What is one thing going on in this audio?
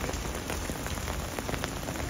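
Rain patters on an umbrella close by.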